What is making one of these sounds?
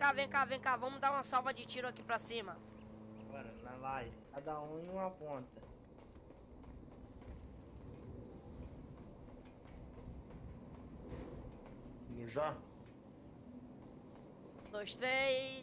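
Footsteps run quickly over gravel and concrete.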